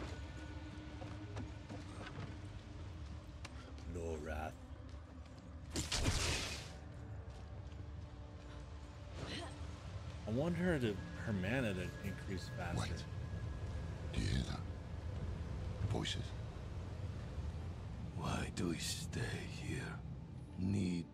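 A man talks casually into a close microphone.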